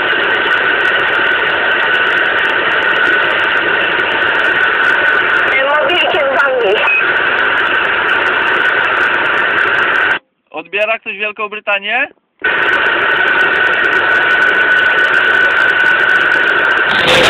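A radio loudly hisses with static.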